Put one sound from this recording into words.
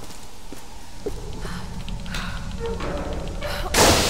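Metal creaks and clanks as a gate is pried open.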